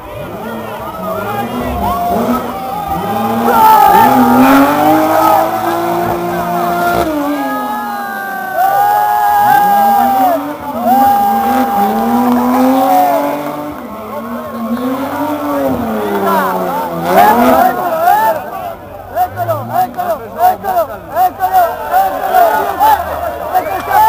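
A rally car engine roars and revs up and down as the car races past.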